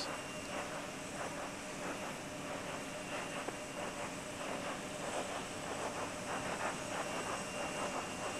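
Vapour hisses steadily from a rocket standing on its launch pad.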